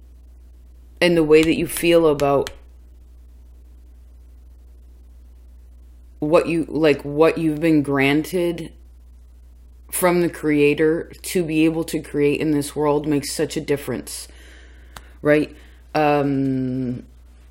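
A young woman speaks calmly and close by, in short bursts with pauses.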